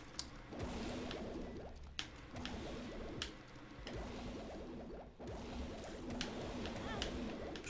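Small shots pop and splat repeatedly.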